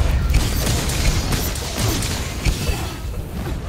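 Fiery explosions burst and crackle loudly.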